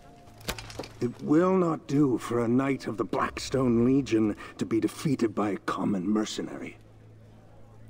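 A man speaks firmly and deeply, close by.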